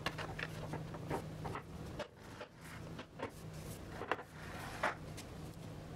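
A hammer taps sharply on wood several times.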